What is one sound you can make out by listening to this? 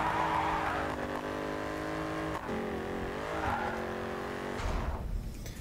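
A car engine roars steadily, its pitch rising and dipping as gears change.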